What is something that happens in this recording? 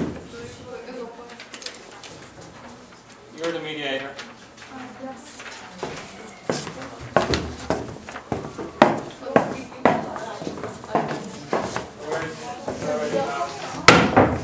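Sheets of paper rustle and shuffle.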